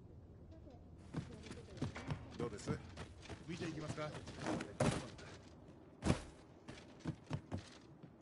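Armoured footsteps clatter on the ground.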